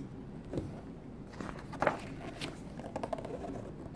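A glossy book page is turned with a papery rustle.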